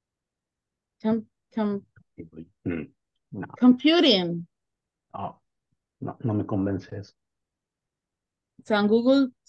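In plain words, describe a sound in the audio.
A man speaks calmly over an online call.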